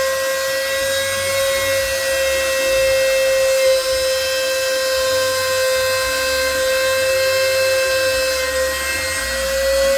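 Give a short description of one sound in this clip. A machine-driven saw whines steadily as it cuts through board.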